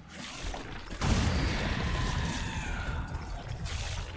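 A grenade explodes with a deep, loud boom.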